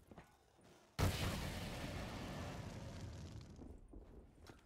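A weapon fires with a loud blast that fades away.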